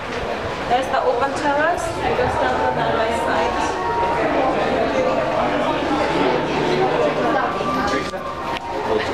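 A crowd of men and women chatter nearby in a large echoing hall.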